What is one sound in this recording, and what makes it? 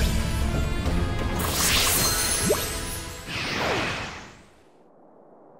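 A glowing energy aura roars and crackles, then fades away.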